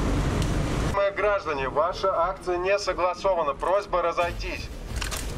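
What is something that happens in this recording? A man speaks through a megaphone, his voice loud and echoing.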